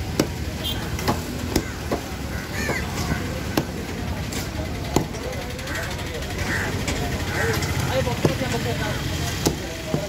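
A cleaver chops through fish onto a wooden block with sharp thuds.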